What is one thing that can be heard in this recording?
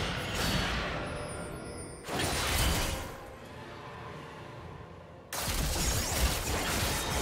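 Weapons clash and spells burst in a busy fight.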